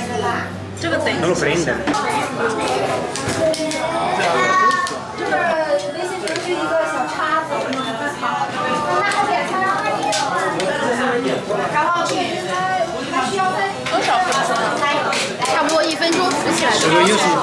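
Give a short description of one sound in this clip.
Metal utensils clink against a pot and dishes.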